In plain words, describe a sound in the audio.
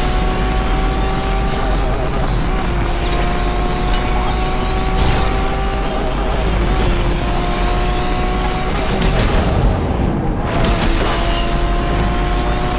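A racing game's supercar engine roars at full speed with nitro boost.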